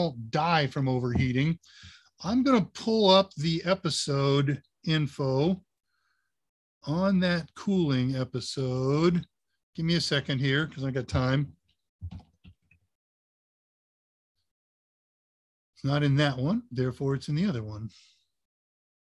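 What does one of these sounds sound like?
An older man speaks calmly over an online call, in bursts with pauses.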